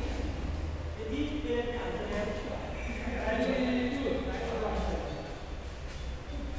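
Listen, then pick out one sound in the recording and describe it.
Men talk and call out across the court.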